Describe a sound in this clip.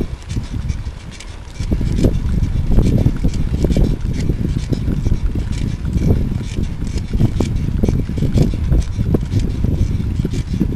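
Wind rumbles and buffets loudly against a moving microphone outdoors.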